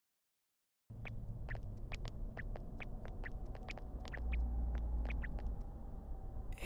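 Footsteps tap at a steady pace on a hard floor.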